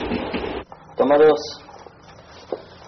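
A man speaks a few words in a low, calm voice close by.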